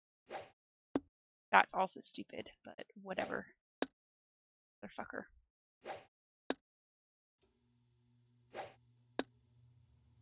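Darts thud into a dartboard one at a time.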